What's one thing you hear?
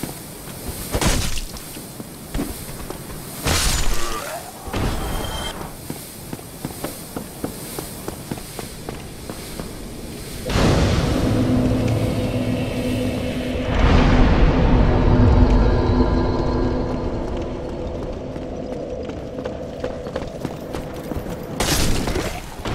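A wooden club strikes a body with a heavy thud.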